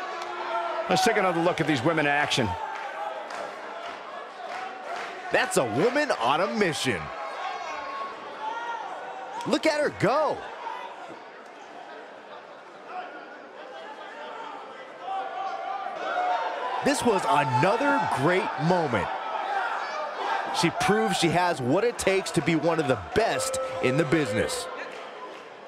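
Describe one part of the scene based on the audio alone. Bodies slam heavily onto a wrestling mat.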